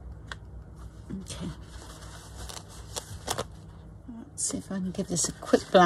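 A paper towel crinkles and rustles as it is pulled off a roll.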